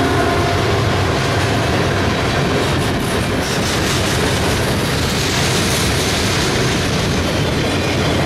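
Freight cars' wheels clatter and squeal on the rails close by.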